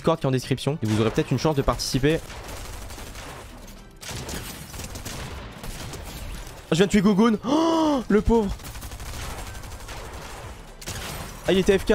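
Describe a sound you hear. Video game gunshots and building sounds clatter.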